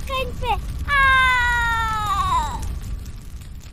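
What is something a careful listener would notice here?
A woman wails in a high, falling scream.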